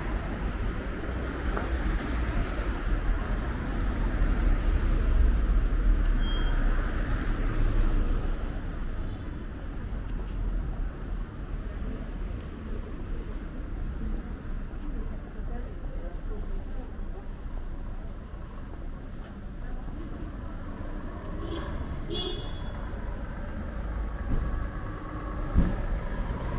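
Footsteps walk steadily along a paved street outdoors.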